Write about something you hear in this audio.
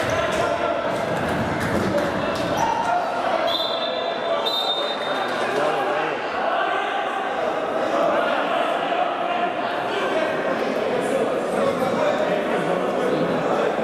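Men shout to each other in an echoing sports hall.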